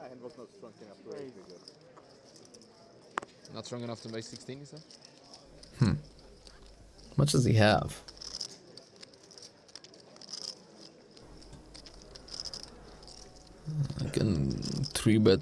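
Poker chips click softly as they are shuffled by hand.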